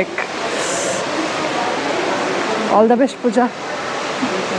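A young woman speaks cheerfully and close up into a microphone.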